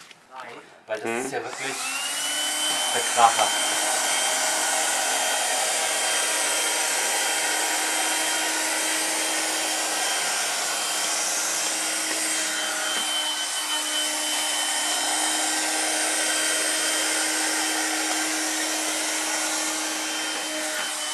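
A battery-powered window vacuum whines at a high pitch while it sucks water off glass.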